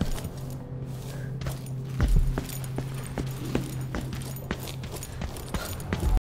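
Footsteps thud on wooden stairs and floorboards.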